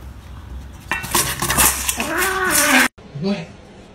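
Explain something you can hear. A metal bowl clatters and scrapes across a hard floor.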